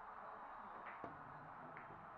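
A cue stick strikes a billiard ball with a sharp click.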